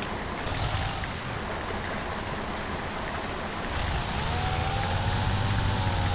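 A bus engine hums steadily and rises in pitch as it speeds up.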